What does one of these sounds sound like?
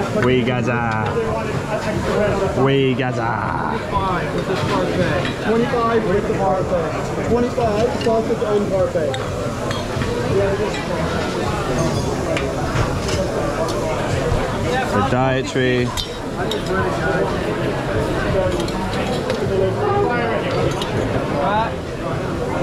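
A metal spoon clinks against plates and a pan.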